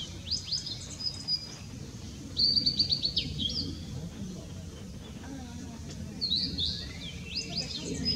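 A blue-and-white flycatcher sings bright whistled phrases.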